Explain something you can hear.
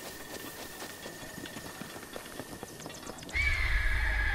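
Footsteps thud quickly across wooden planks.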